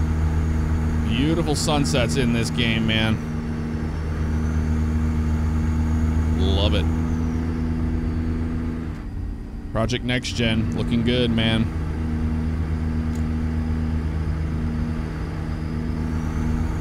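A truck engine drones steadily inside the cab.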